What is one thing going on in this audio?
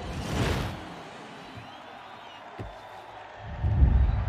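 A large crowd cheers and roars in a huge echoing arena.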